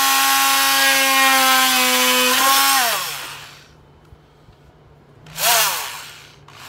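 A power carving tool whines loudly against wood, then winds down.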